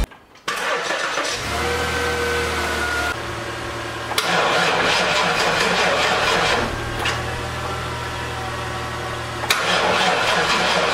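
A bus engine runs with a loud, rattling hum.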